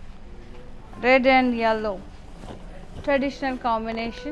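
A woman speaks with animation close to a microphone.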